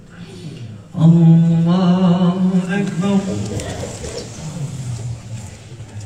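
A man chants loudly in a long drawn-out voice close by.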